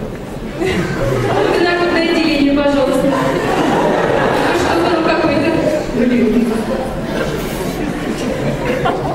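An accordion plays a tune.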